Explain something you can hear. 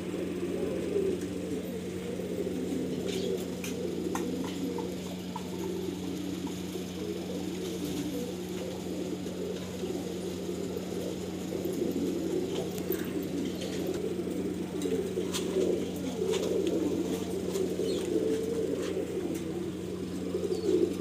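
Pigeons coo with low, throaty murmurs all around.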